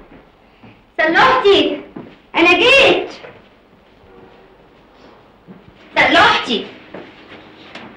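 A woman talks loudly with animation.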